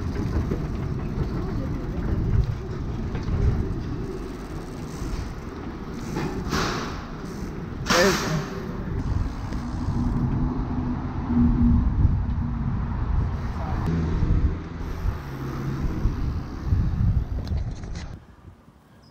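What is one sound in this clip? Bicycle tyres roll over a smooth hard floor with a low rumble.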